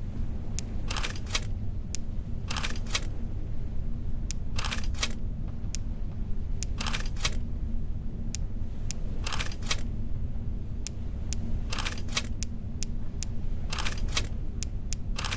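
Gemstones click and whoosh softly as they swap places.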